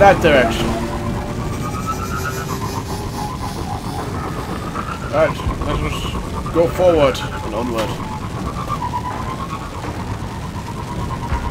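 A hovering vehicle's engine hums and whines steadily.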